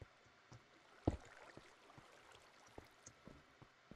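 A block thuds as it is placed.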